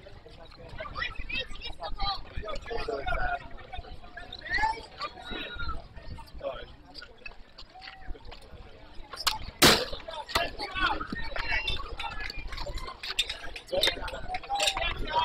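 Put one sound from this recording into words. Young players and onlookers chatter and call out nearby, outdoors.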